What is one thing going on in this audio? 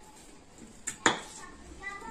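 A spoon clinks against a metal dish.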